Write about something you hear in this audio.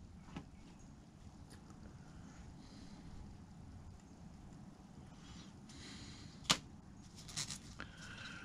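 Stiff cloth rustles softly as it is handled.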